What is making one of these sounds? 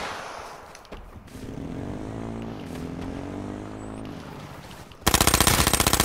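A quad bike engine revs and hums.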